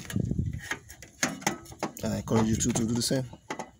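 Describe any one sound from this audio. A socket wrench clicks as it turns a bolt in metal.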